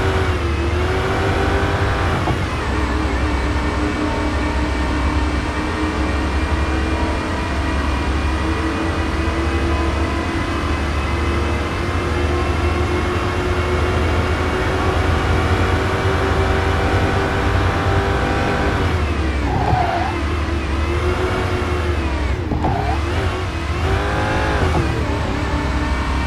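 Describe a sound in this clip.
A supercharged V8 sports car engine roars at full throttle.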